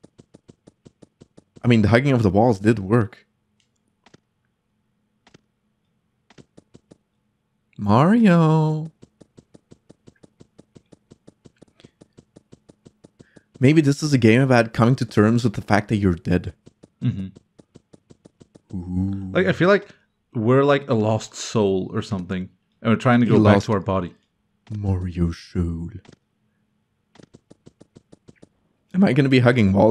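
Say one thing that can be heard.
Quick light footsteps tap steadily on a hard floor.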